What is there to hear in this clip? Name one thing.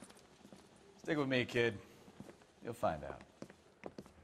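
A man answers with confidence.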